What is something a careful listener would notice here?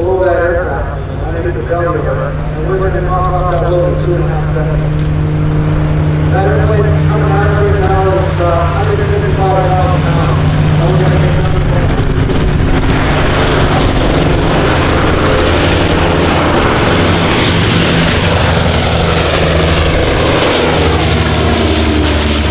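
Propeller engines of a low-flying plane drone steadily and grow louder as the plane comes closer.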